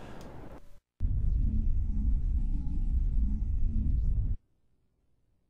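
A spaceship's engines rumble with a deep, steady drone.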